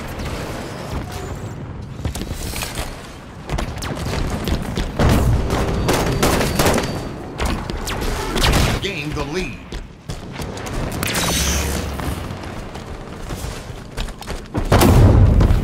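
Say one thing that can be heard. An energy blade swings with a sharp whoosh.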